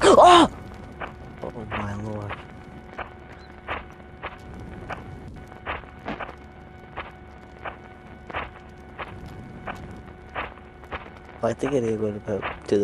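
Footsteps crunch steadily through undergrowth.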